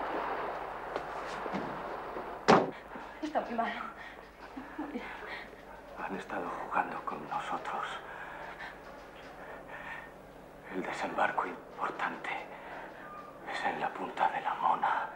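A man speaks in a low voice close by.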